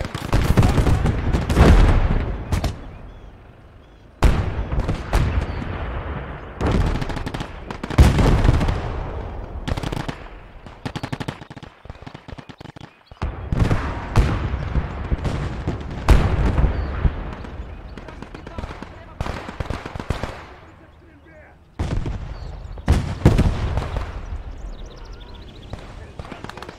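Explosions boom loudly and rumble away, again and again.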